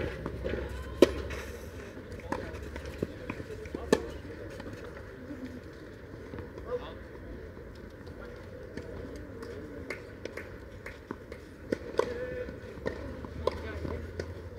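Tennis balls are struck sharply with rackets, back and forth.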